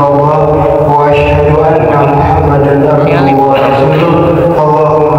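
A man chants in a long, steady melodic voice through a loudspeaker in a large echoing hall.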